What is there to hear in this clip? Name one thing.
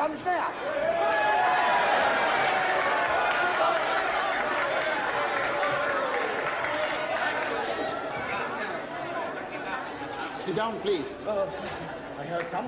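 A crowd of men shouts and yells excitedly nearby.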